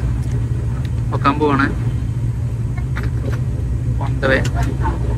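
A propeller engine drones loudly and steadily close by.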